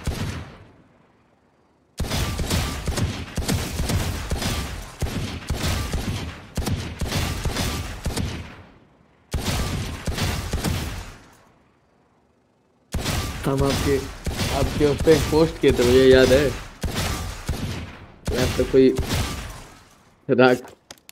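Pistol shots ring out in quick bursts, echoing in a large hall.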